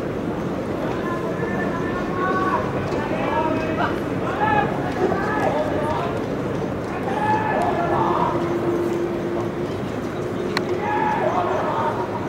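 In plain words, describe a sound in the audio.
Distant men call out across an open, echoing ground.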